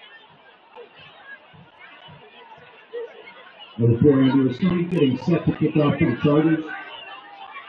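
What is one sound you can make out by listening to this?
A crowd murmurs and cheers faintly in the distance outdoors.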